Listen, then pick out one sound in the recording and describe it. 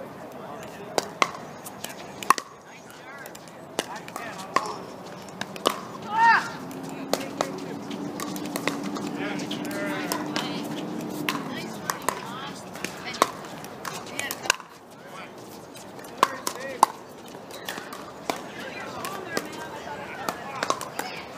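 Pickleball paddles hit a plastic ball back and forth.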